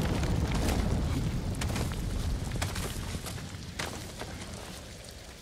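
Hands and boots scrape and knock against rock as someone climbs.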